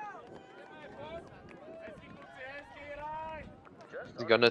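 Young men cheer and shout in the distance outdoors.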